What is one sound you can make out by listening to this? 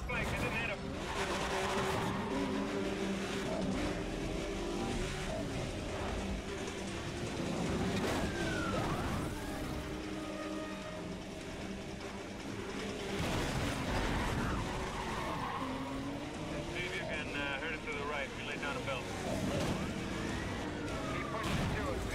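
Tyres screech as a car slides through a corner.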